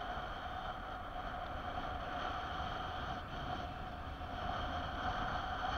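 Wind rushes steadily past the microphone high in the air.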